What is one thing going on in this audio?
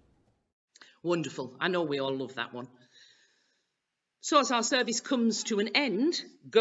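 A middle-aged woman speaks calmly and closely into a microphone.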